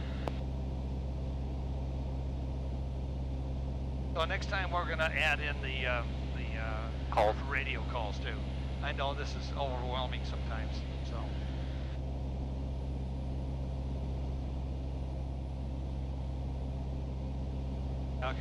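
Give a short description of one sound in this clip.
A small plane's propeller engine drones steadily inside the cockpit.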